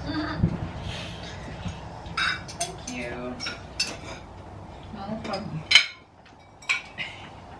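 Cutlery clinks against plates and bowls.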